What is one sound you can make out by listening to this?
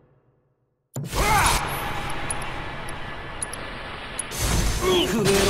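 An energy blast whooshes and crackles.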